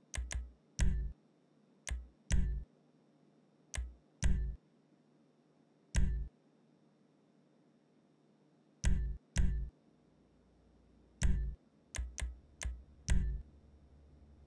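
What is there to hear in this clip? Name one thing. Short menu selection clicks sound.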